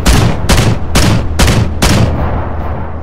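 Heavy twin cannons fire a quick burst of booming shots.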